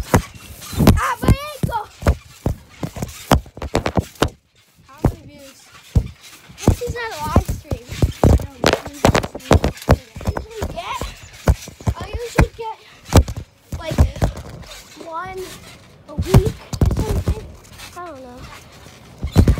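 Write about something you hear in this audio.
A young boy talks and shouts excitedly close by.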